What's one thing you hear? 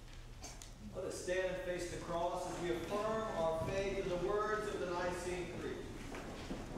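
A congregation sings a hymn in a large echoing hall.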